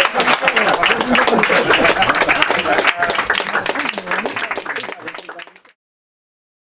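An audience applauds loudly, then fades away.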